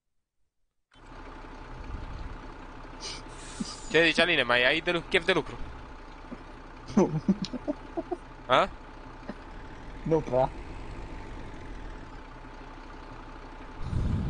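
A tractor engine idles with a steady low hum.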